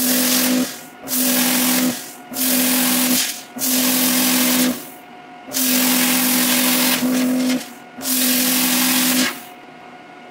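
A plasma cutter hisses and roars in short bursts.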